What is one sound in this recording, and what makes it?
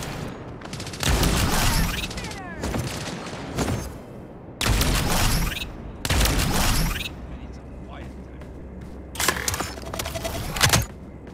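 Gunshots from a game's rifle fire in loud bursts.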